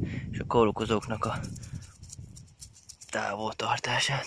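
A brush scrubs against a plant stem.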